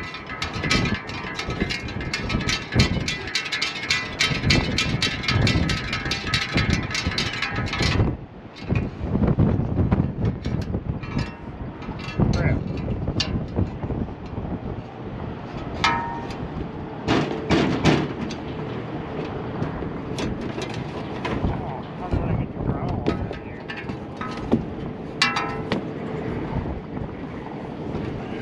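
Metal parts clank and rattle as a fan is handled.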